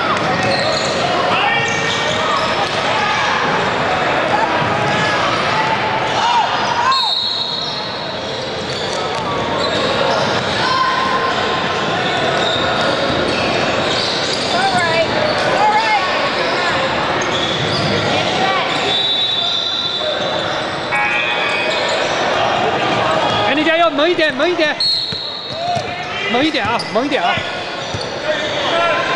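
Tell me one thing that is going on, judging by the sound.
Spectators chatter and shout, echoing around a large gym.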